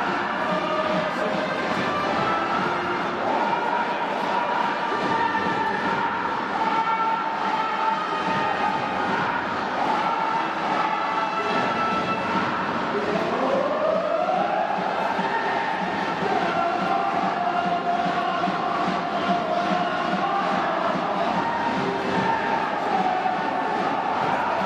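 A large crowd sings and chants along.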